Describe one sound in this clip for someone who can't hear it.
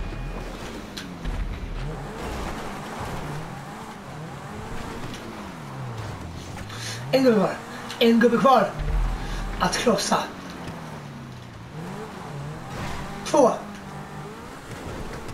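A sports car engine revs up and down as the car races over rough ground.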